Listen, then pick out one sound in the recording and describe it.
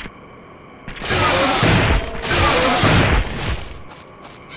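A video game gun fires an electric blast.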